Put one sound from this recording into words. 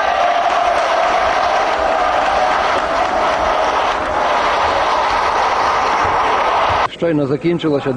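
A large crowd applauds and cheers.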